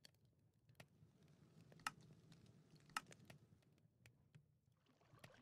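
Soft clicks sound as game menu items are selected.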